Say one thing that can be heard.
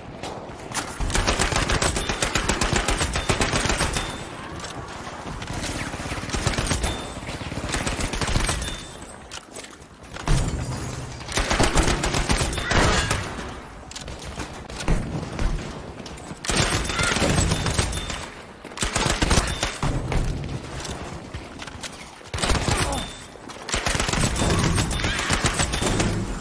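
A submachine gun fires rapid bursts, loud and close.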